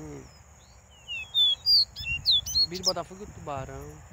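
A bird chirps and whistles sharply nearby.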